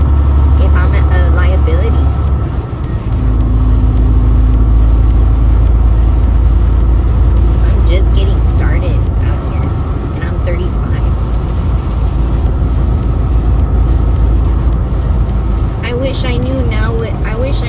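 A semi truck's engine and road noise drone from inside the cab at highway speed.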